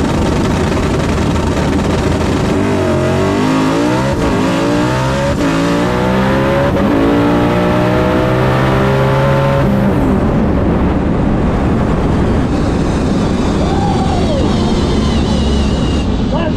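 A race car engine roars loudly up close, rising in pitch as it speeds up through the gears.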